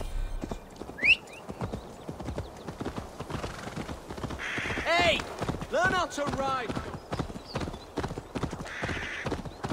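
A horse's hooves thud steadily along a dirt path.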